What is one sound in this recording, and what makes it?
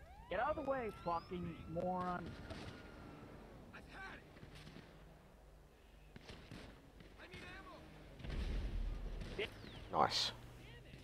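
A rifle shot cracks sharply.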